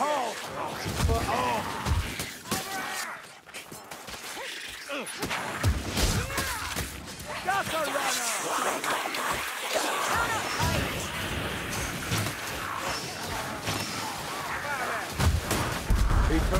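Blades clash and thud in a fierce melee.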